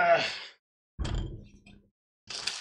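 A heavy metal case is set down on a table with a dull thump.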